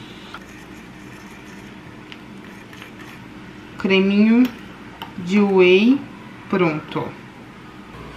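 A fork clinks against a small ceramic bowl.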